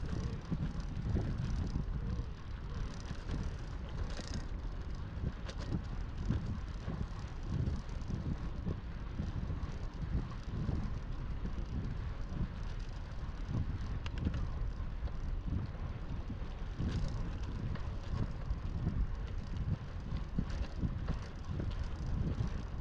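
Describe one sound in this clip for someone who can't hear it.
Bicycle tyres hum on a paved path.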